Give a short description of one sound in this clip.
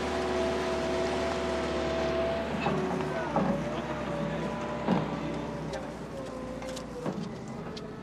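An excavator engine hums and whines steadily.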